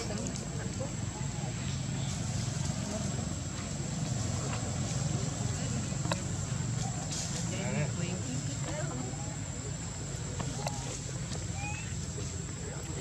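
A young monkey squeals and chatters close by.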